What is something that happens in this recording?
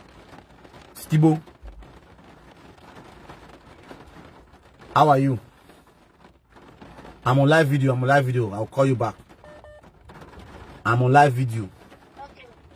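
A man talks loudly and with animation, close by, in bursts with pauses.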